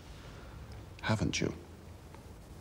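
A man asks a short question close by.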